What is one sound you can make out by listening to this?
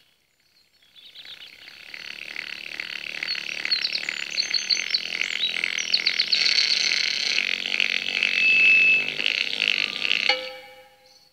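A speaking tube rises out of the ground with a whirring, tinkling sound.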